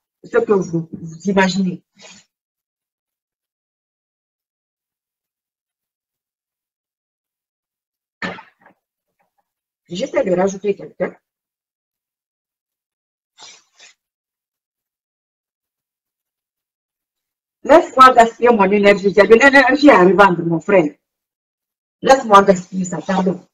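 A young woman speaks calmly and close to the microphone, with pauses.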